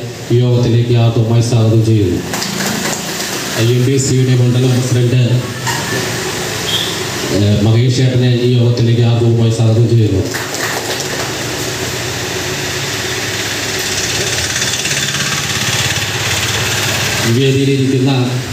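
A man speaks loudly into a microphone over a loudspeaker.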